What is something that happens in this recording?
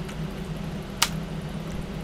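A short electronic click sounds once.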